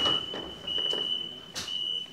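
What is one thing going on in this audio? A subway train starts to move with a rising whine.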